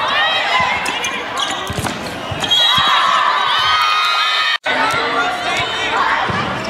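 A crowd of young women shout and cheer in a large echoing hall.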